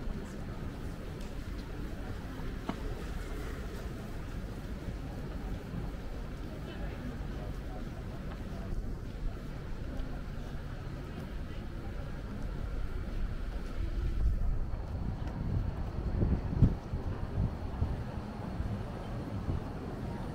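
Footsteps tap along a pavement.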